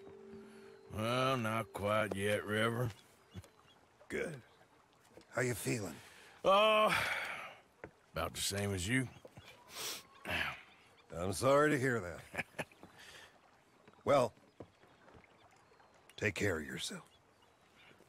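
An older man speaks calmly in reply.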